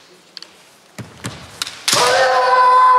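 Bamboo swords clack together sharply.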